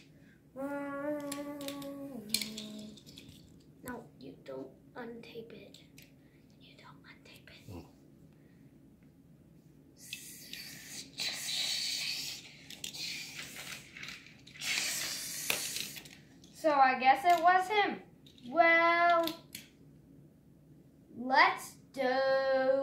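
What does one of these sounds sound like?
Small toy cars click and clatter on a hard floor.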